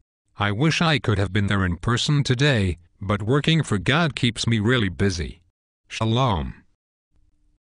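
A man speaks calmly in a synthetic, computer-generated voice.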